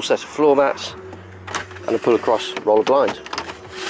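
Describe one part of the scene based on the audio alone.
A plastic cover slides and clicks into place.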